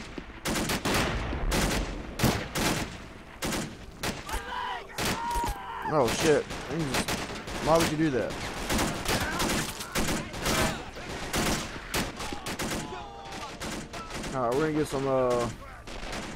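A shell explodes with a heavy boom.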